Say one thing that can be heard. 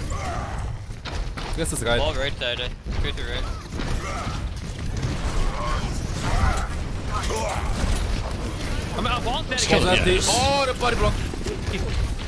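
Game gunfire and explosions crackle and boom.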